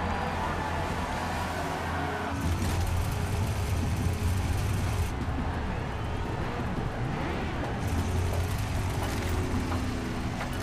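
Car engines idle with a low rumble.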